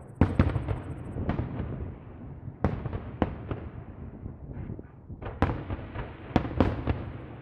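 Fireworks burst with loud booms and echoing cracks outdoors.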